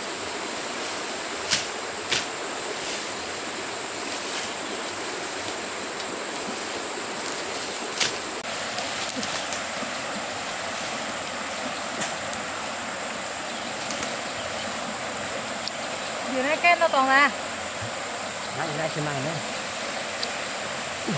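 Leaves and fern fronds rustle and snap as they are pulled and handled.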